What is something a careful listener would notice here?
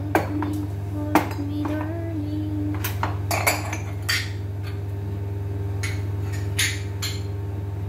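Plates and cups clink and clatter as they are handled.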